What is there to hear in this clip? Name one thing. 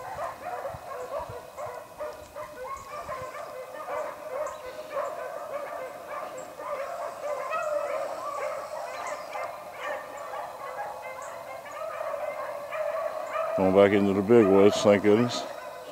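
A pack of hounds bays and yelps in the distance, growing louder toward the end.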